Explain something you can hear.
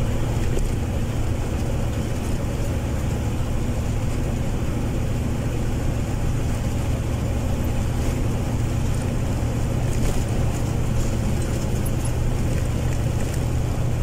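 Tyres roll on asphalt with a steady road noise.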